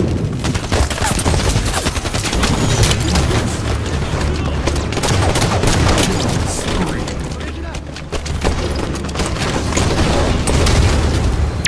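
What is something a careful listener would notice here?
Gunfire from a game rattles in quick bursts.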